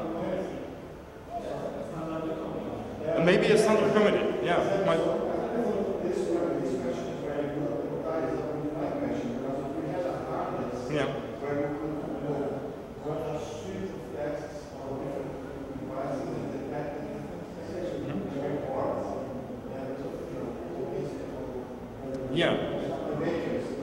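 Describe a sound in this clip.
A man speaks calmly into a microphone through a loudspeaker in a room with some echo.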